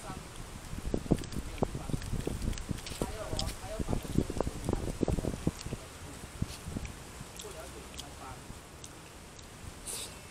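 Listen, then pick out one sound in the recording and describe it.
A man chews food noisily, close by.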